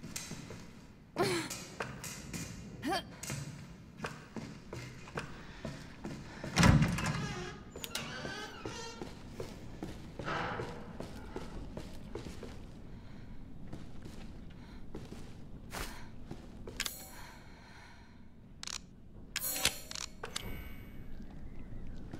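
Footsteps scuff across a gritty floor.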